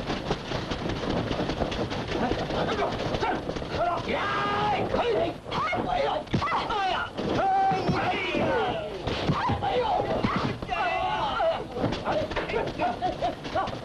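Men shout and grunt while fighting.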